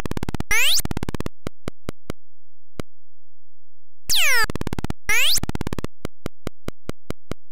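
Beeping retro game sound effects tick rapidly as a character moves.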